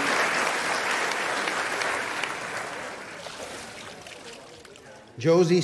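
Water splashes and sloshes as a person rises out of a pool, then quiets down.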